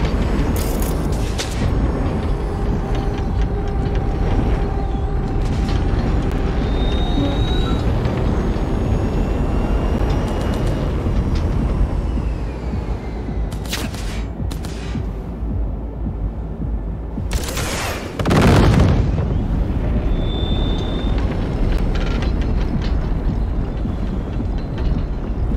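The thrusters of a hovering armoured vehicle roar in a low rumble.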